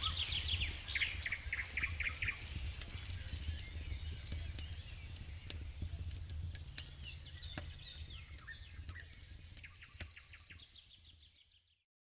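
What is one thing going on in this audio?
A campfire crackles and pops steadily, fading out at the end.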